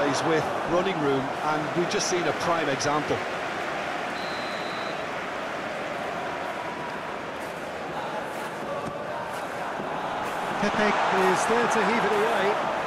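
A large crowd roars and murmurs steadily in a big stadium.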